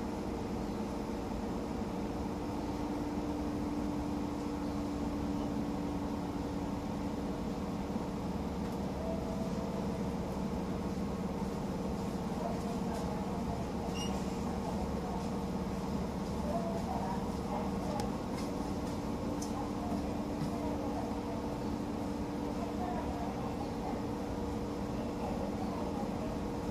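A train's motor hums steadily with a low rumble.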